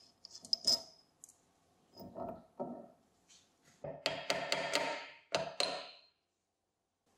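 Metal parts clink and scrape as a housing is taken apart.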